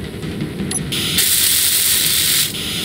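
A welding tool hisses and crackles with sparks.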